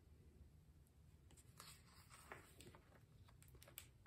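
A page of a book turns with a soft rustle.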